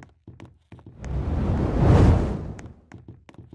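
A campfire roars and crackles briefly.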